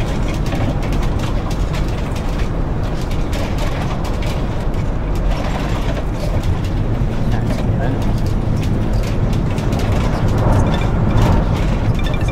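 Bus tyres roll over the road.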